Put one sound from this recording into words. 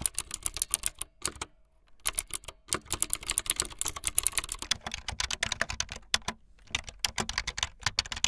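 Fingers type rapidly on a keyboard, keys clicking and clacking.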